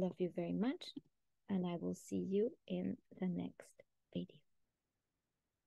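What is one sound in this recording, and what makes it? A woman speaks calmly and warmly over an online call.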